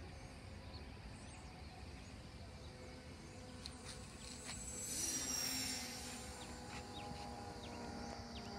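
A small propeller plane drones overhead, growing louder as it passes and then fading slightly.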